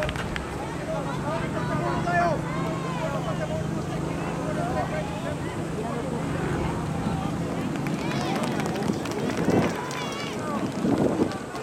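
Several adults chat quietly outdoors.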